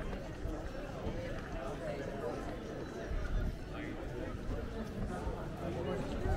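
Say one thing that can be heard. Footsteps shuffle on paving stones nearby.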